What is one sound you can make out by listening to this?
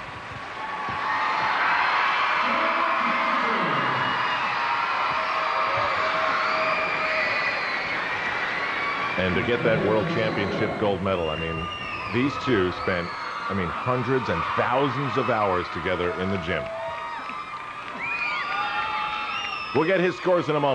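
A large crowd cheers and applauds in a big echoing arena.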